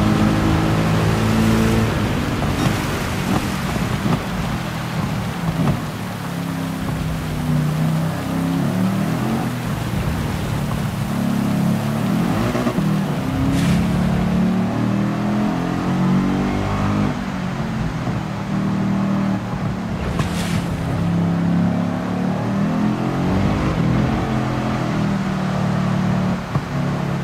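Tyres hiss over a wet track.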